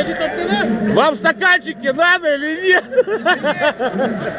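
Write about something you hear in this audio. A group of young men shout and cheer together.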